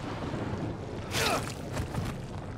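A heavy blow lands and a body thuds to the ground.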